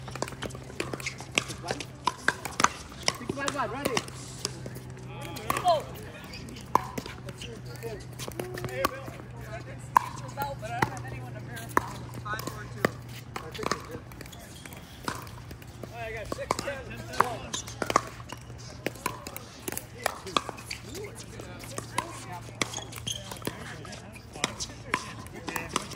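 Paddles strike a plastic ball with sharp hollow pops, many times.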